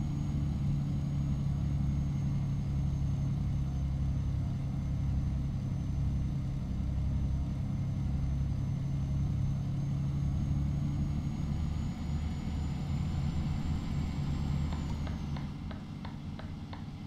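A truck engine drones steadily at low pitch while driving.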